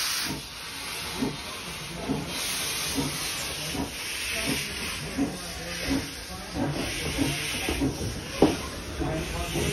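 A steam locomotive chuffs rhythmically as it passes close by.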